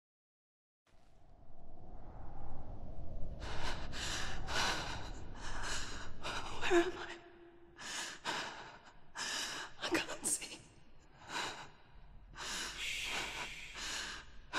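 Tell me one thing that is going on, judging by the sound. A young woman speaks in a frightened, breathy voice close by.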